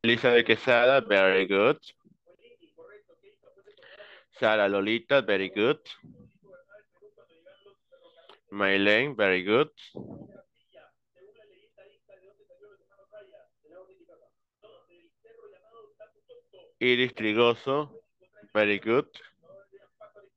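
A man speaks in short, clear phrases over an online call, with pauses between them.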